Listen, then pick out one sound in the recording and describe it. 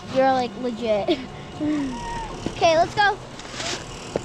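A young child talks excitedly up close.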